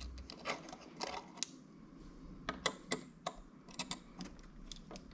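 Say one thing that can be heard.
Small metal parts click and tap against plastic.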